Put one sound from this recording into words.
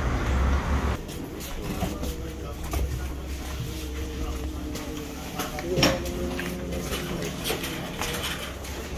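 Several men talk and chant nearby in a room.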